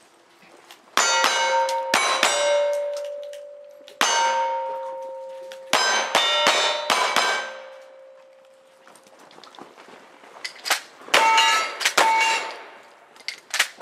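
Struck steel targets ring out with a lingering metallic clang.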